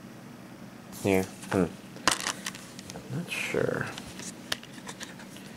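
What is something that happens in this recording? A plastic disc case snaps open.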